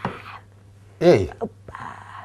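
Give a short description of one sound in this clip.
A man speaks in an animated, playful voice close by.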